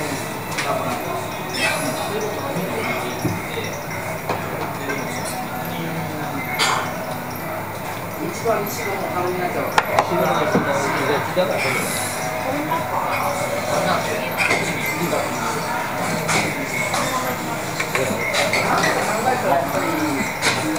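A man talks casually up close.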